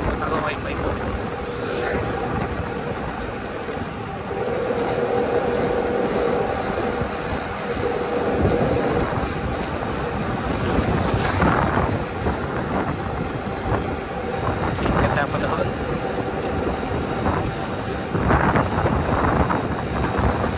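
Wind rushes and buffets loudly past the rider.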